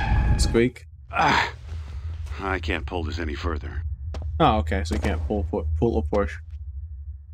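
A man grunts and speaks with strain.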